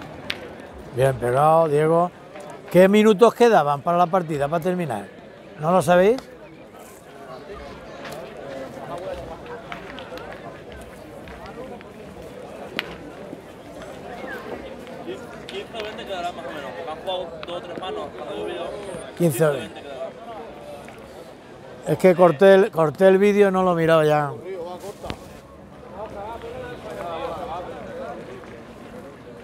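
A crowd murmurs and chatters outdoors in the background.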